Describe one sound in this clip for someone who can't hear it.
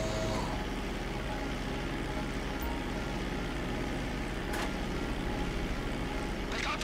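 Propeller engines of a plane drone steadily.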